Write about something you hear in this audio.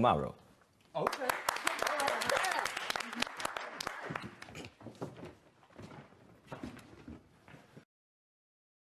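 A small group claps and cheers.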